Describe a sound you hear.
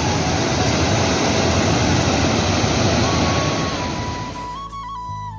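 A river rushes over rocks.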